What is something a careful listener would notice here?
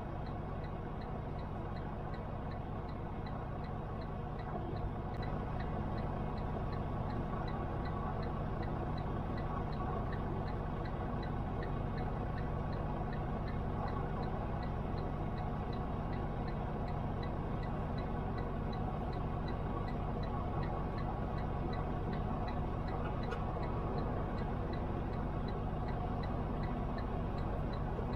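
A vehicle engine drones steadily from inside the cab.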